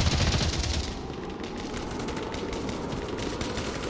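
A rifle is reloaded with metallic clicks.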